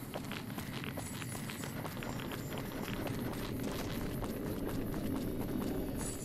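Footsteps crunch over rough ground.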